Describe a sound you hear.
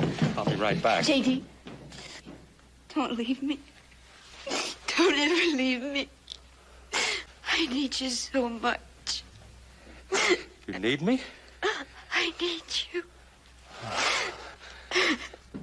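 A man speaks softly and earnestly up close.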